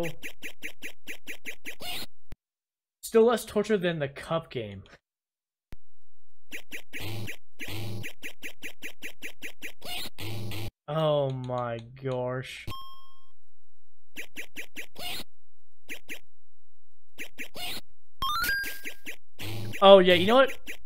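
Chiptune arcade game music and sound effects play.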